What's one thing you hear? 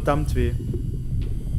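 A young man speaks briefly and quietly into a microphone.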